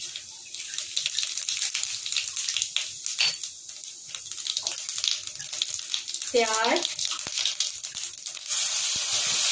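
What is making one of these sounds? Hot oil sizzles and crackles softly in a pan.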